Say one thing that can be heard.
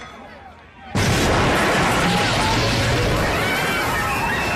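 A loud explosion bursts with a deep roar.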